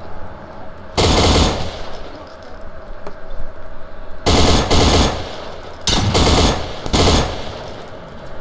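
A rifle fires loud bursts of automatic shots that echo.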